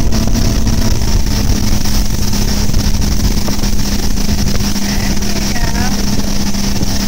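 An outboard motor drones steadily at speed.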